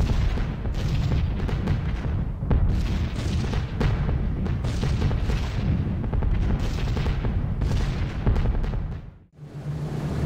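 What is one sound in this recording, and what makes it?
Flak shells burst in rapid, rumbling explosions.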